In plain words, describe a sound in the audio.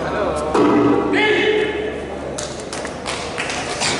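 A man calls out loudly in a large echoing hall.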